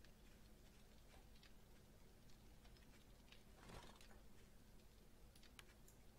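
A small fire crackles softly.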